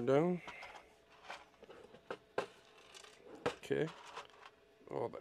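Small plastic bricks rattle inside a bin.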